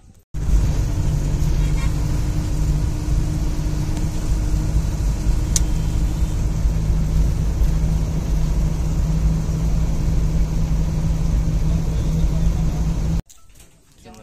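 A vehicle engine drones steadily from inside the vehicle.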